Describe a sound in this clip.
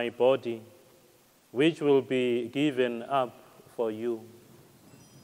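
A man chants slowly through a microphone in an echoing hall.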